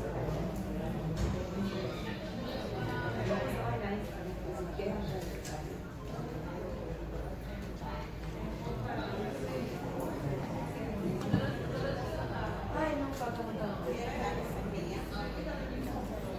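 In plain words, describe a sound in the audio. A crowd of men and women chatter in a large echoing hall.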